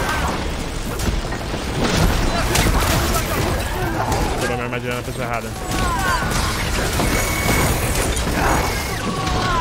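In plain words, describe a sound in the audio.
Crackling energy blasts and heavy impacts ring out in a fight.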